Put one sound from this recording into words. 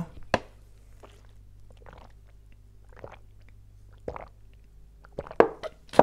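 A young man gulps water from a plastic bottle.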